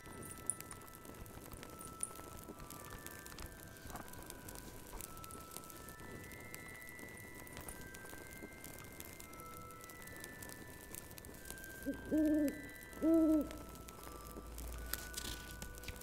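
A fire crackles and pops softly.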